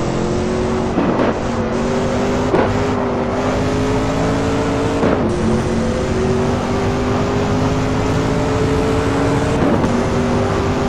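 Gear changes cut a racing car engine's roar with short sharp pops.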